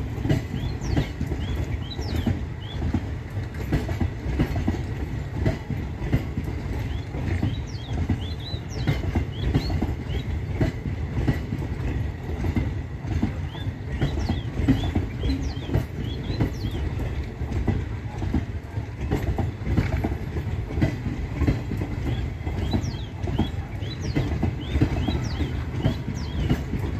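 A passenger train rumbles steadily past close by.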